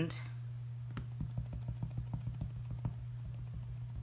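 A rubber stamp taps repeatedly on an ink pad.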